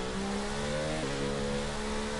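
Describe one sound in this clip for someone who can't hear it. A racing car engine drops in pitch briefly as it shifts gear.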